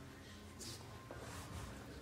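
Footsteps tap on a hard floor indoors.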